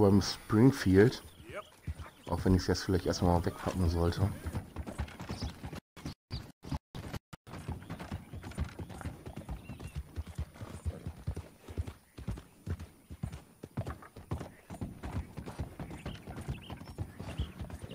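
A horse gallops with quick, steady hoofbeats.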